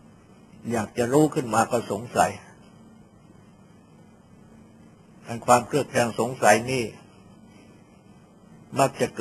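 An elderly man speaks calmly in short phrases.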